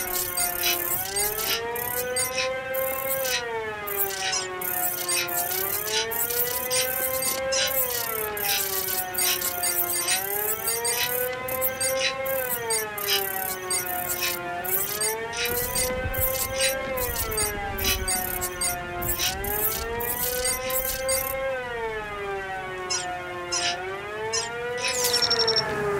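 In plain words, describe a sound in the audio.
A police siren wails nearby, rising and falling slowly over and over.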